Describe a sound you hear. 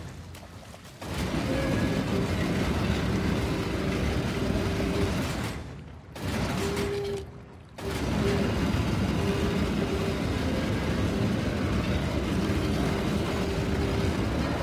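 A heavy stone mechanism rumbles and grinds.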